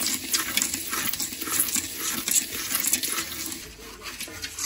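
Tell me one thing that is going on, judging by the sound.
A metal scraper scratches and stirs dry grains in a metal pan.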